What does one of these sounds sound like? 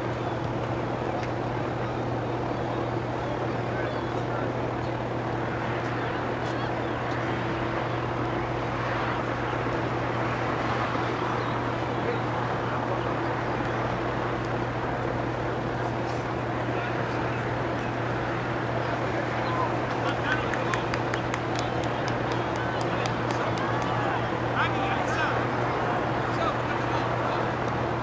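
Young players shout and call to each other across an open field, far off.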